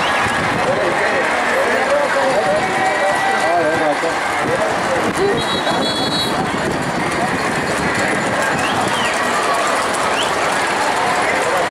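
A large crowd chatters and cheers loudly outdoors.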